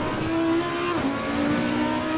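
A V10 racing car engine drops in pitch at a gear change.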